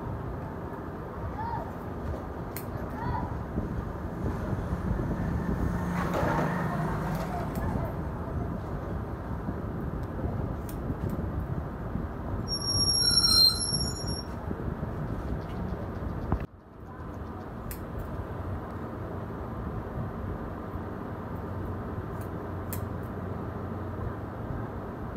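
Scissors snip through hair close by.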